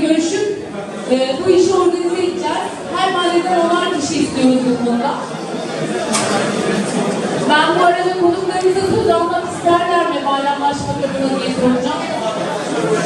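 A woman sings into a microphone, heard through loudspeakers in a large echoing hall.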